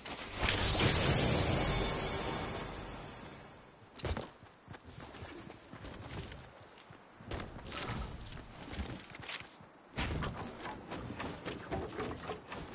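Footsteps run over grass and stone in a video game.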